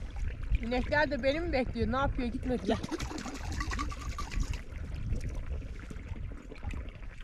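Water trickles over rocks.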